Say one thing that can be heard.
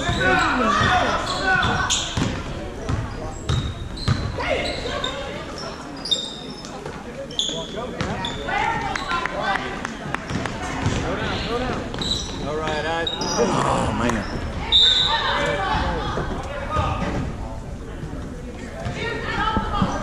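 Spectators chatter nearby in a large echoing gym.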